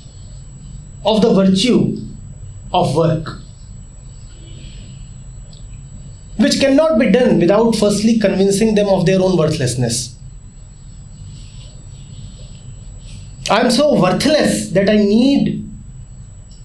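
A man speaks calmly and thoughtfully into a close microphone, with pauses.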